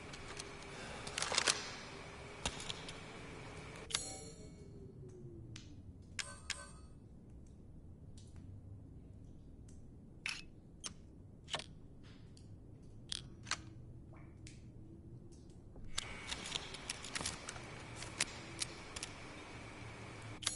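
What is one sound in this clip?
A handgun clicks and rattles as it is handled and reloaded.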